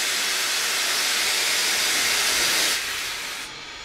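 A steam locomotive hisses loudly up close.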